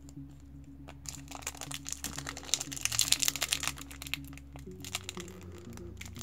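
A foil wrapper crinkles and tears as it is torn open.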